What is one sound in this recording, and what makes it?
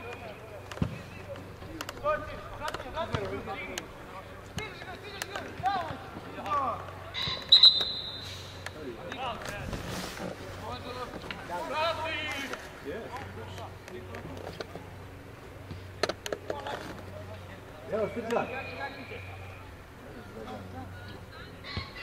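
Young men shout to each other outdoors across an open pitch.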